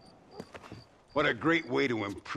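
An elderly man speaks with a gravelly voice.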